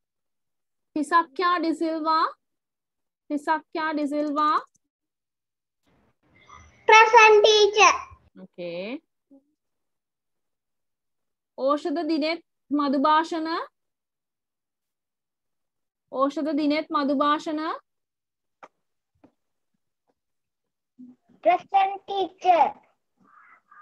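A young child speaks slowly in short bursts over an online call.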